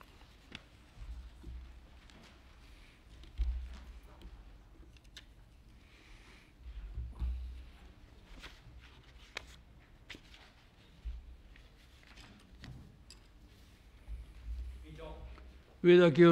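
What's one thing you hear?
Footsteps thud softly across the floor.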